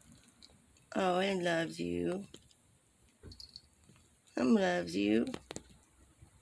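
A cat meows loudly and drawn out.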